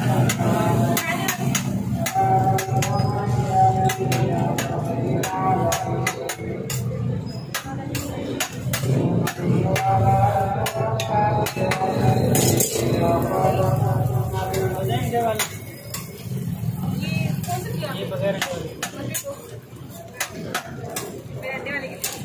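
Food sizzles on a hot griddle.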